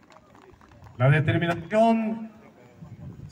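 A man speaks loudly over a loudspeaker.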